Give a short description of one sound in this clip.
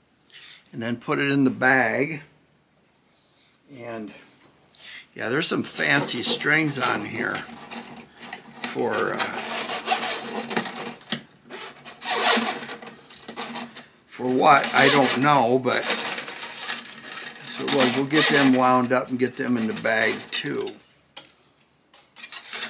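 Loose guitar strings rattle and scrape as hands handle them.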